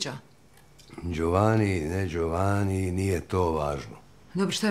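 A middle-aged man answers calmly.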